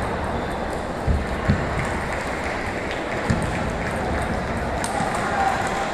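A ping-pong ball clicks back and forth between paddles and the table.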